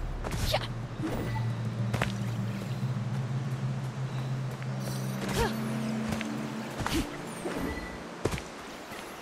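Footsteps patter quickly on stone and grass.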